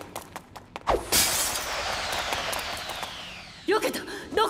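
A blade swishes through the air.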